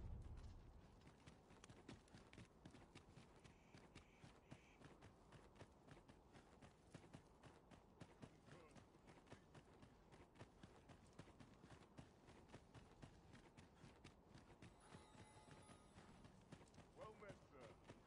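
Footsteps run quickly over dirt and stone.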